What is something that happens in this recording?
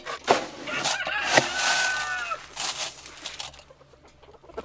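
Dry feed rattles as it is scooped from a metal bin.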